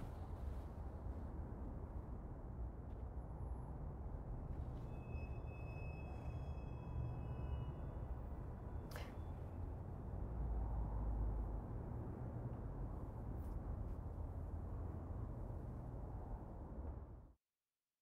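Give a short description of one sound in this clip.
A car engine rumbles low and steady from inside the cabin.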